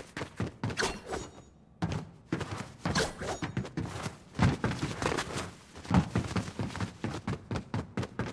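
Footsteps clang on metal as a game character climbs.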